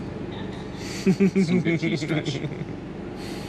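A young woman hums with pleasure.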